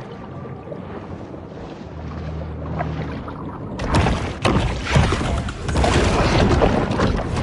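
Water gurgles and churns underwater, growing louder and splashing harder midway.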